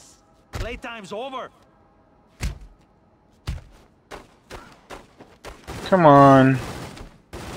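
Heavy blows thud during a scuffle.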